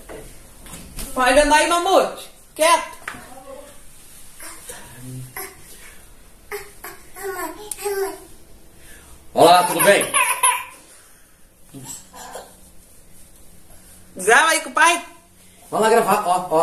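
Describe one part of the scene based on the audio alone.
A small child squeals and babbles into a microphone.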